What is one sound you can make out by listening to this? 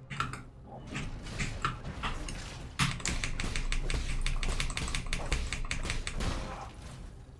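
Game combat sounds clash and whoosh.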